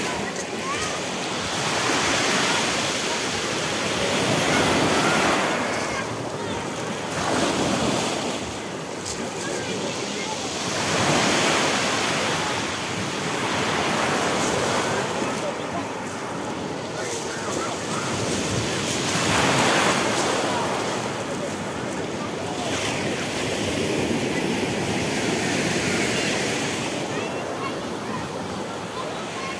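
Small waves break and wash over pebbles, rising and falling in surges.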